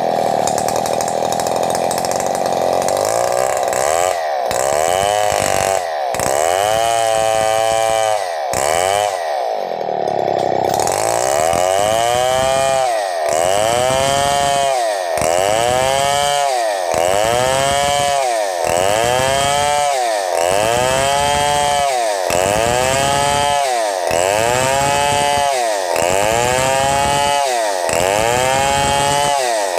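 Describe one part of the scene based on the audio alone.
A chainsaw engine roars loudly, rising and falling in a steady rhythm as it cuts along a log.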